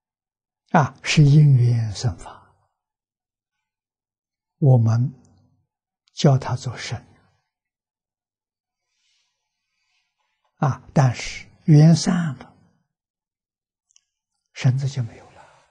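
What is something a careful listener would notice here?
An elderly man speaks calmly and slowly into a microphone, with pauses.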